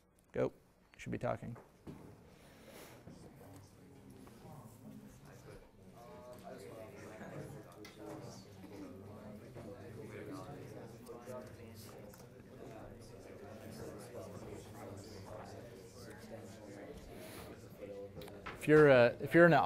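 A man speaks calmly to a room, a little distant and with some echo.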